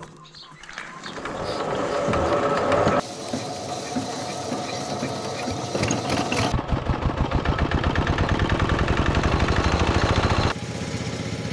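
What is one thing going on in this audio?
A small diesel engine sputters to life and chugs loudly and steadily.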